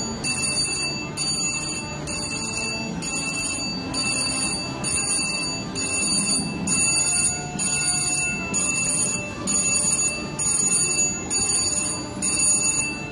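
A slot machine plays a bright, repeating electronic jingle.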